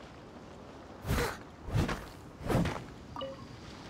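A sword slashes through the air with a bright whoosh.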